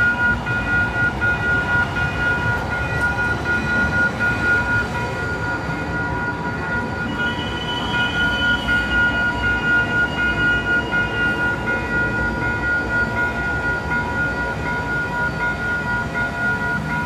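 A crossing warning bell rings steadily.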